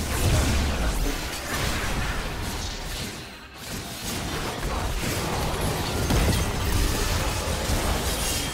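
Magical blasts and clashing battle effects burst in quick succession.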